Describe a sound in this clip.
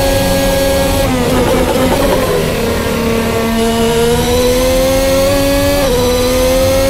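A racing car engine drops low under braking into a corner, then climbs again.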